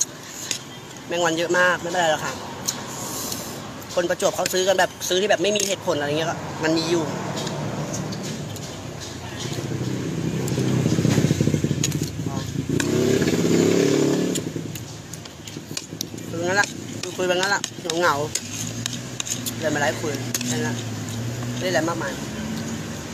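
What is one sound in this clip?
A woman talks casually and close by, in bursts between bites.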